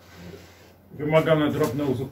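A man speaks close by.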